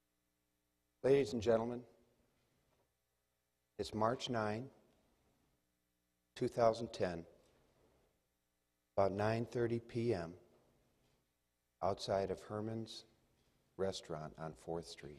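A man speaks with pauses through a microphone in a large hall.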